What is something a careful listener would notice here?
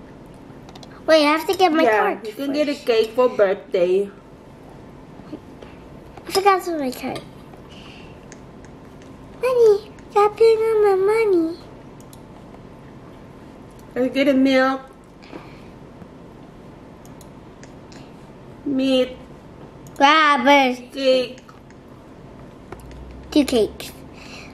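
A young girl talks in short bursts close to a microphone.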